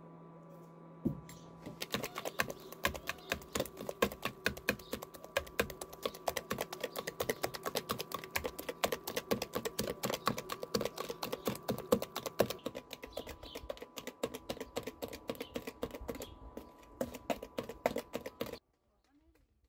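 A wire whisk clinks rapidly against a plastic bowl while beating batter.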